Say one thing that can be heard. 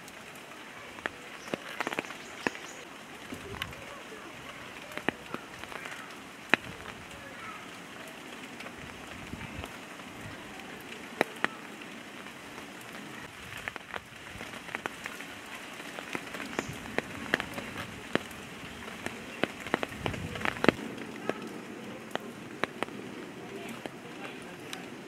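Twigs and dry leaves rustle and snap close by as young gorillas play.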